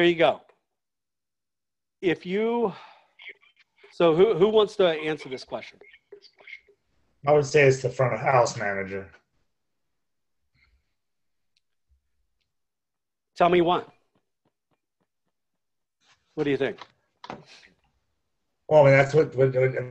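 A man speaks calmly through an online call microphone, in short phrases with pauses.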